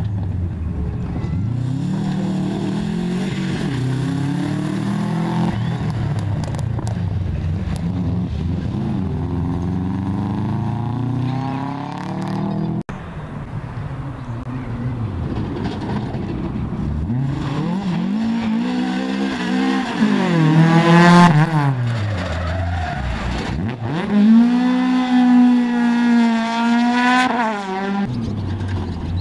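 A rally car engine roars and revs hard as it races past.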